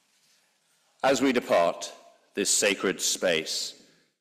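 A middle-aged man speaks calmly into a microphone in a large echoing room.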